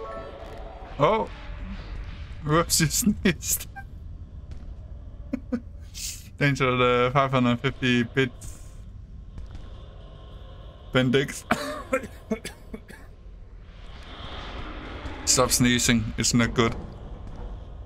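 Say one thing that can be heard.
A young man talks and laughs into a close microphone with animation.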